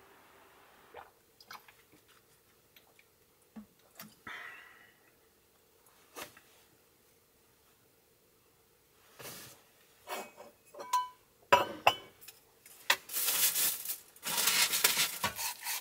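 A man taps and handles small objects on a wooden table.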